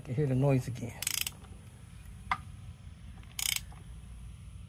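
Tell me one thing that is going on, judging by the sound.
A ratchet wrench clicks quickly on a bolt.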